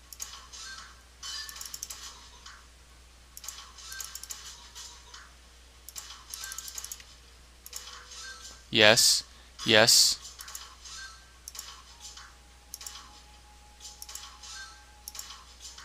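Small game balls click and clatter in quick bursts.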